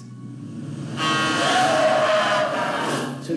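A car's tyres screech loudly.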